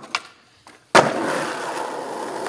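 Skateboard wheels roll roughly over concrete.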